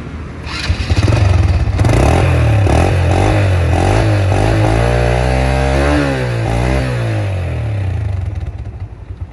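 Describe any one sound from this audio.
A motorcycle engine revs loudly up close, rising and falling in pitch.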